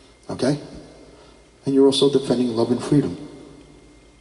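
A middle-aged man speaks into a microphone in short phrases, heard through a loudspeaker.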